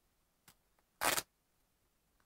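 Plastic bubble wrap crinkles as it is peeled away.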